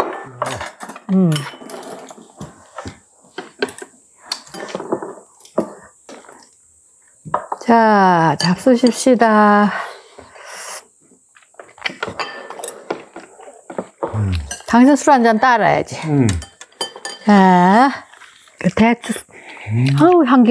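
Chopsticks click against ceramic bowls and plates.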